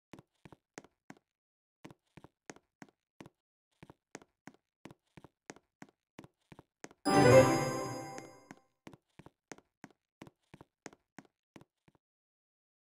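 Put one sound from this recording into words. Quick light footsteps patter steadily.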